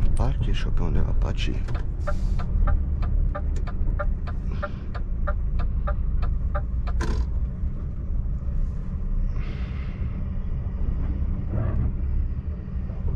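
A truck engine rumbles steadily and low.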